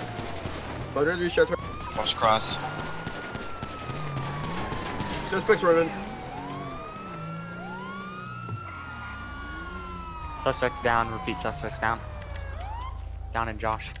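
A police siren wails, rising and falling.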